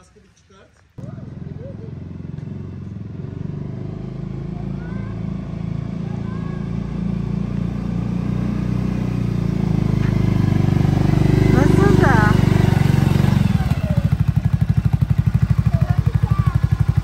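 A quad bike engine rumbles as it drives closer and then idles loudly.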